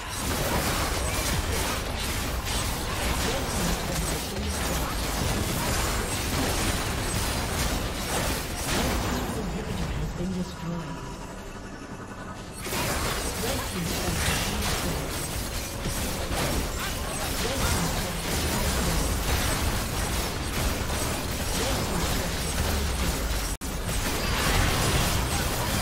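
Video game battle effects clash and explode.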